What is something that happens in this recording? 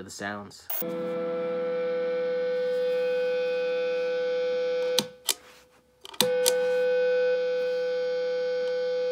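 A fuzzy, buzzing electric tone drones steadily, then cuts out briefly and returns.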